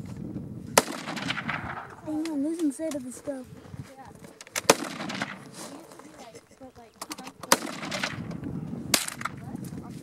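A rifle fires with sharp, short cracks.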